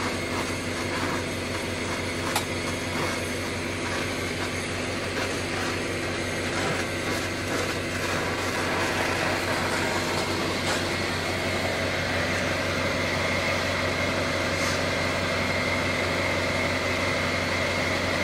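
A gas torch flame hisses and roars steadily.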